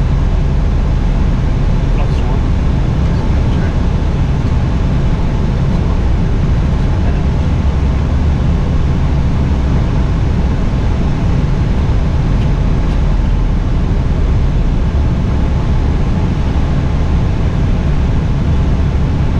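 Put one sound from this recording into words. Jet engines and rushing air roar steadily.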